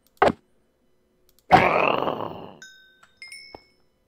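Stone bricks crack and break apart.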